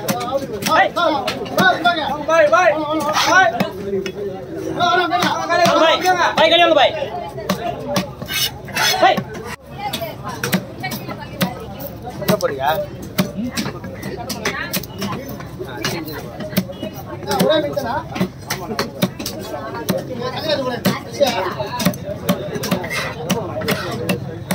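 A knife chops and thuds against a wooden board.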